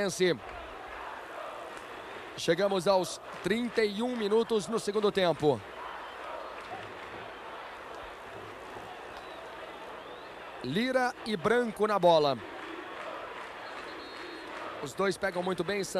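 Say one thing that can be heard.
A large crowd roars in a stadium.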